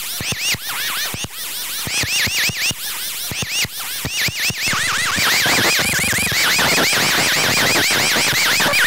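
An electronic synthesizer makes rapid chirping, warbling blips that speed up and thicken.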